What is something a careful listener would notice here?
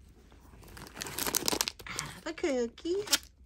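A plastic snack wrapper crinkles.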